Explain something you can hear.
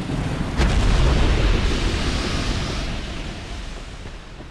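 A large creature crashes heavily to the ground with a deep rumble.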